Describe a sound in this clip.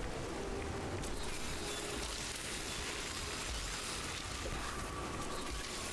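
Electric bursts crackle and zap.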